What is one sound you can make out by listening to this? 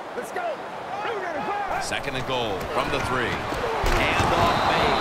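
A stadium crowd cheers louder as a play gets underway.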